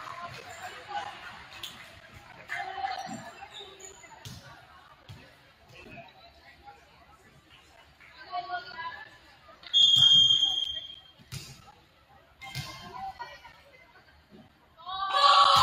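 Players and spectators call out and shout in a large echoing gym.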